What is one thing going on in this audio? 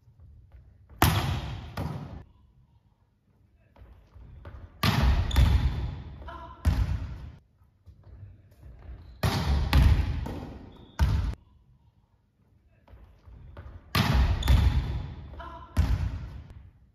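A volleyball is struck hard and thuds, echoing in a large hall.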